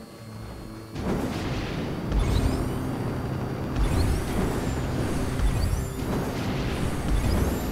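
A rocket booster blasts with a loud rushing roar.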